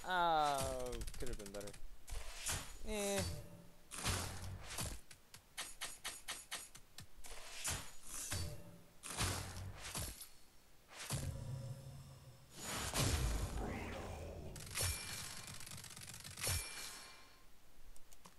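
Game sound effects stamp and chime as scores tally up.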